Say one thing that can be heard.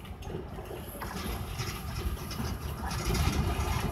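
A tram rumbles along rails, drawing nearer.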